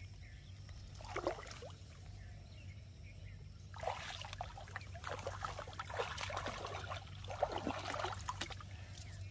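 Water splashes as a man wades through shallow water.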